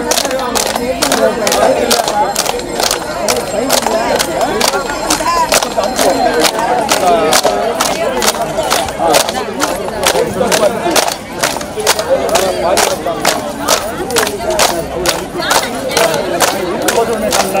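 A group of women clap their hands in a steady, quick rhythm.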